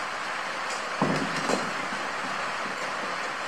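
Plates and serving dishes clink.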